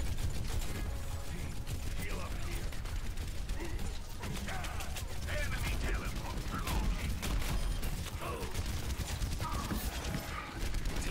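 Rapid gunfire from a game weapon crackles.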